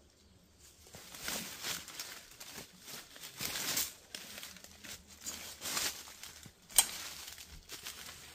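Leaves and brush rustle as a man pushes through undergrowth.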